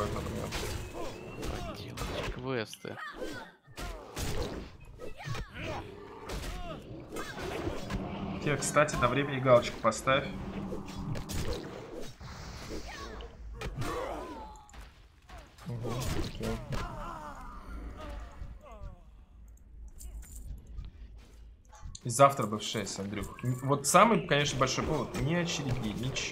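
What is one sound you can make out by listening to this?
Weapon blows clash in a fight.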